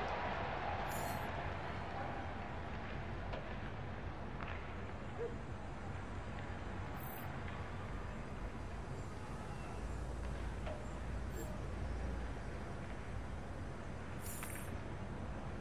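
A soft electronic swish sounds as a digital magazine page turns.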